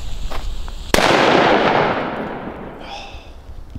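A firework explodes with a loud bang that echoes away outdoors.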